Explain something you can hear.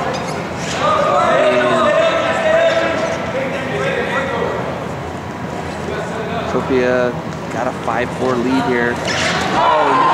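Spectators shout and cheer in a large echoing hall.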